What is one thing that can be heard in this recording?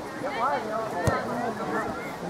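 A soccer ball is kicked with a dull thud.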